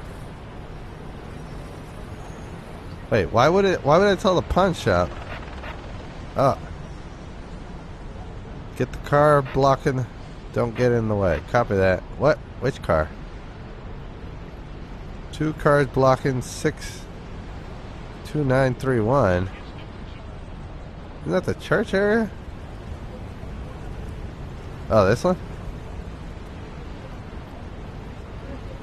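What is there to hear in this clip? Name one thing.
Traffic hums steadily along a street.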